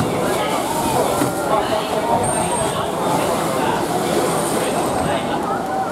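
A large orca splashes heavily through the water.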